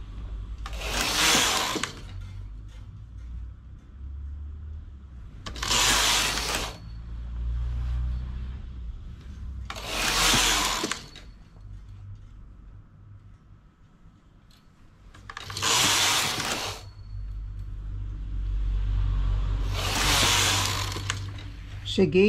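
A knitting machine carriage swishes and clatters across the needle bed in repeated passes.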